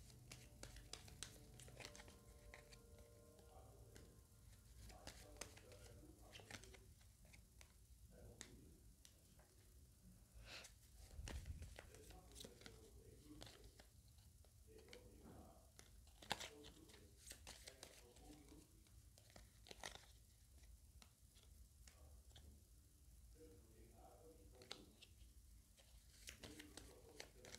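Paper cards are laid down softly with light taps and rustles.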